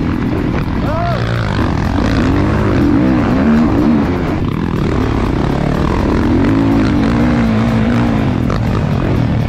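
A dirt bike engine revs loudly close by, rising and falling in pitch.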